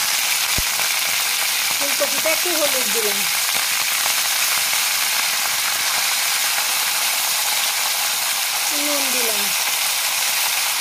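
A wood fire crackles softly under a pan.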